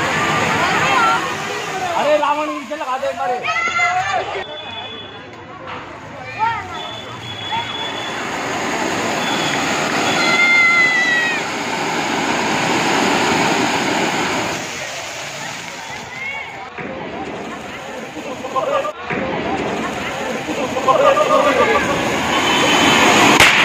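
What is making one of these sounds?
Young men shout and cheer nearby.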